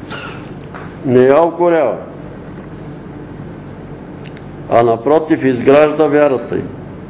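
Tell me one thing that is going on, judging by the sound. An elderly man reads aloud slowly through a microphone, with long pauses.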